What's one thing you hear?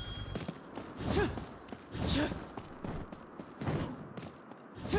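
A blade whooshes through the air in short bursts.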